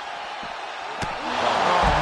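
A heavy body slams onto a hard surface with a thud.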